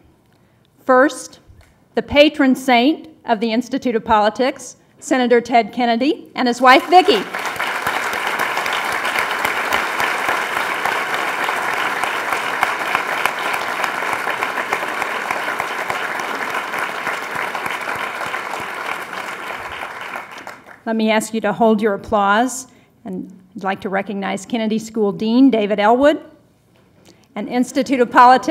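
A middle-aged woman speaks calmly into a microphone in a large hall.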